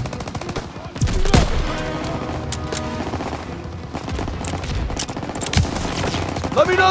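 Rifle shots crack now and then.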